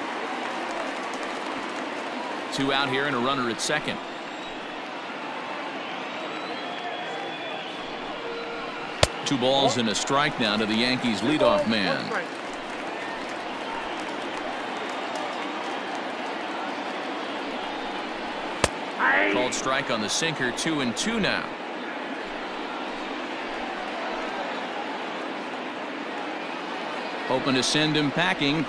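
A large crowd murmurs steadily in a stadium.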